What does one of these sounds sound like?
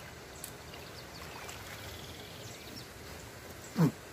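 Water splashes as a fish is lifted in a landing net.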